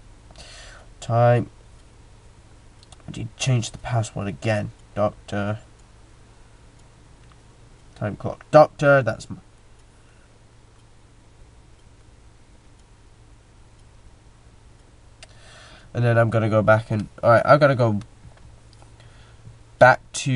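A young man talks casually into a headset microphone, close up, in short bursts.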